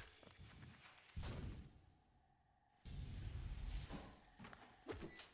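A deep magical burst roars and rumbles.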